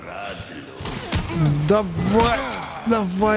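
A door bangs open under a kick.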